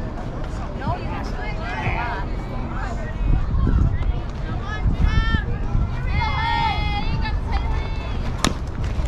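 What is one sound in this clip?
Young girls shout and cheer from across an open field.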